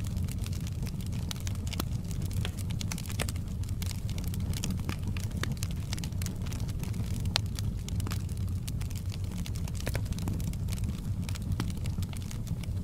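Burning logs crackle and pop in a fire.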